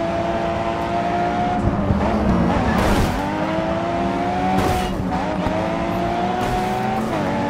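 A racing car engine roars loudly, its pitch rising through the gears and dropping at each shift.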